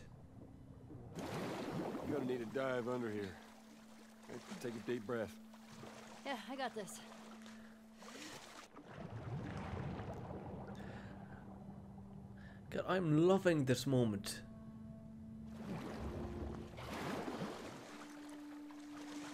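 Water splashes as someone swims.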